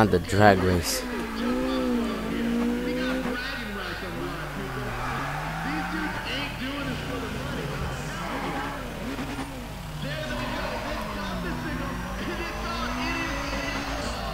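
A car engine revs loudly, its pitch rising and falling.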